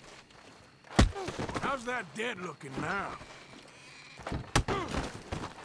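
Fists hit a body with heavy thuds.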